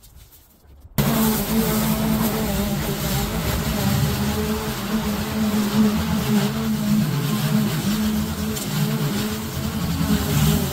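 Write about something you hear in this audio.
A petrol lawn mower roars steadily while cutting thick grass.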